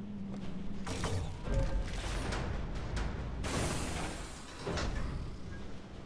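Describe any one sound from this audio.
A heavy metal door rumbles and grinds open.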